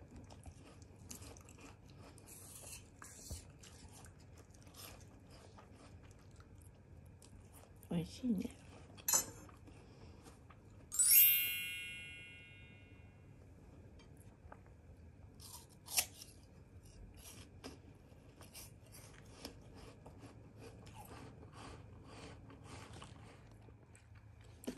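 A dog crunches on a piece of apple.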